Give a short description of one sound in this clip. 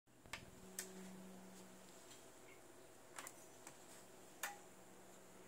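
Buttons on a device click sharply a few times.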